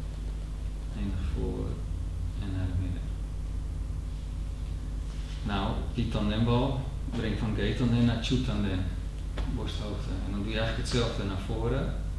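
A man speaks calmly from across a large, echoing hall.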